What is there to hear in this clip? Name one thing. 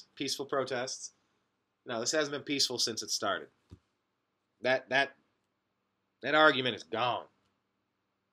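A man speaks casually into a nearby microphone, with pauses.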